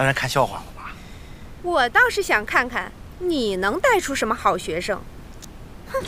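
A middle-aged woman speaks firmly and with animation close by.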